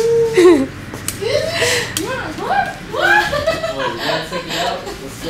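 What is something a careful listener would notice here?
Young people talk and laugh with animation close by.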